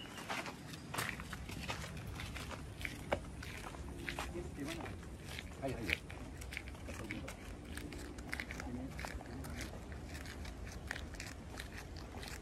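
Footsteps scuff on concrete.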